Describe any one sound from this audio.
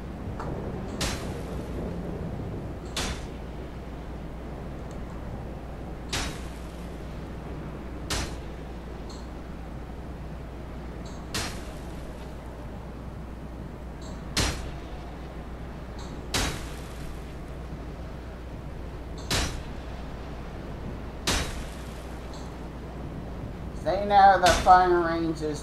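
Arrows are loosed from a bow with sharp twangs, again and again.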